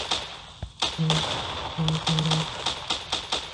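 A game explosion booms.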